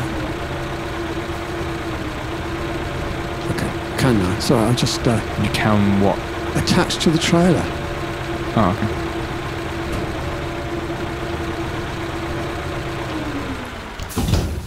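A heavy truck engine idles with a steady low hum.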